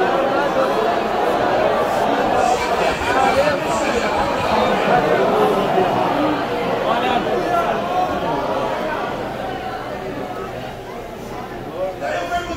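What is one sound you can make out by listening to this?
A large crowd sings together in an echoing hall.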